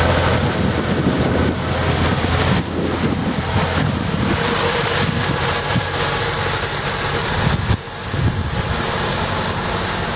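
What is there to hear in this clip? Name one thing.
A small engine drones steadily close by.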